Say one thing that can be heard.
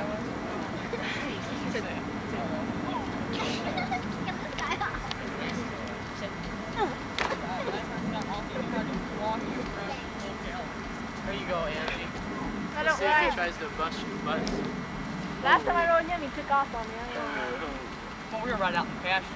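A young woman talks and laughs nearby, outdoors.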